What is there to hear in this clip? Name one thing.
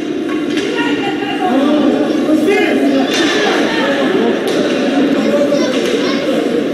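A crowd of spectators cheers and shouts loudly in an echoing arena.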